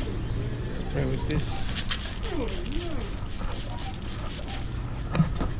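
A spray bottle hisses in short squirts.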